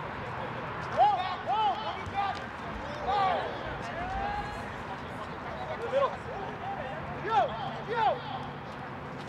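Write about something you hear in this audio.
Young men call out to each other across an open outdoor football pitch.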